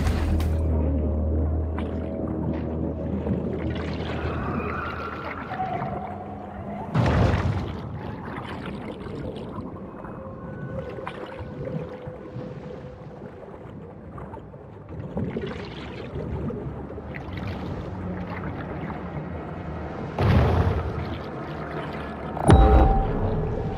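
A large creature swims underwater, with muffled swirling water.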